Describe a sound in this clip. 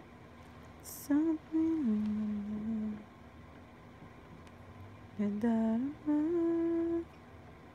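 A young woman hums a short tune close by.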